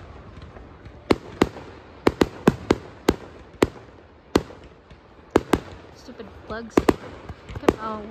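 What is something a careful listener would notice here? Fireworks crackle in rapid bursts in the distance.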